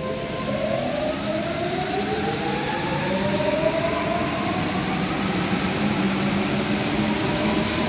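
A metro train rumbles along the track, its motor whining as it speeds up.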